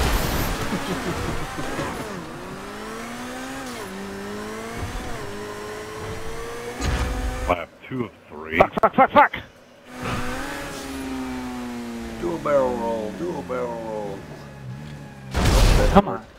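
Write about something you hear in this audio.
A car engine revs high and shifts gears as it speeds along.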